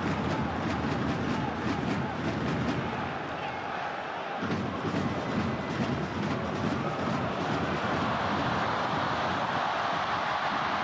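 A large crowd roars and chants steadily.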